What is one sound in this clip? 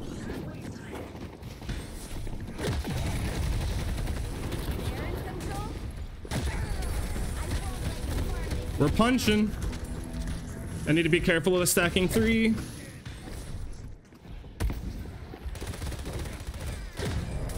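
Rapid gunfire crackles and thuds in bursts.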